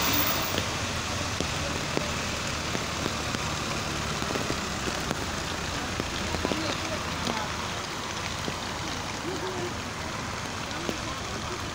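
Car tyres hiss on a wet road as traffic passes.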